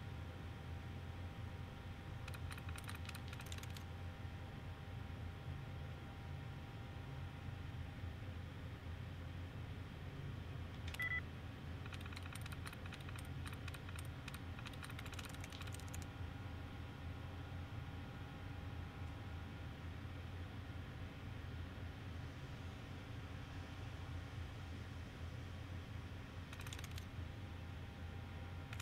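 A computer terminal hums steadily.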